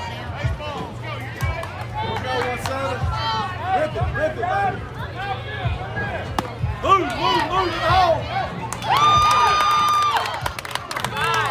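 Children shout and cheer excitedly outdoors.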